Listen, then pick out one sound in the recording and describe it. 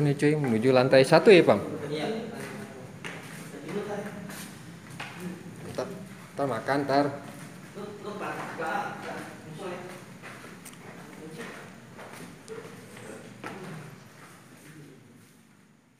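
Footsteps tap down hard stairs in an echoing stairwell.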